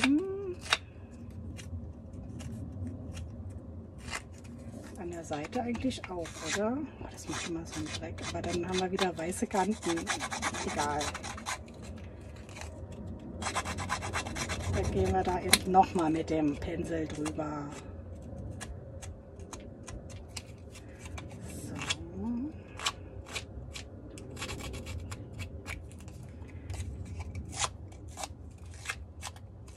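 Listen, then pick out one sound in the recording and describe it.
A foam blending tool dabs and rubs against paper in soft, quick taps.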